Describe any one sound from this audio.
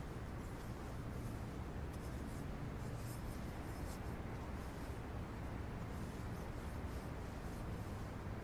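A cloth rubs softly against a metal trophy.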